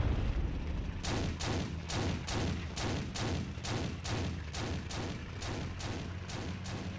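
Tank tracks clank in a quick, even rhythm.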